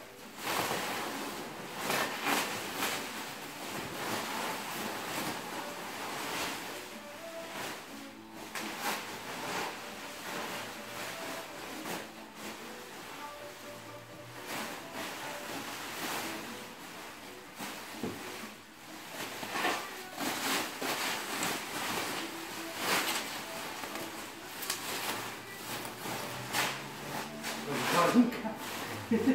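Plastic wrap crinkles and rustles as it is pulled and wrapped.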